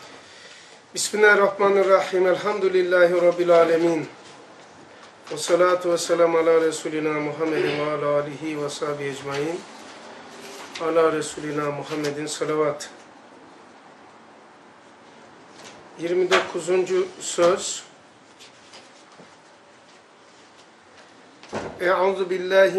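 An elderly man reads aloud in a slow, melodic chant, close by.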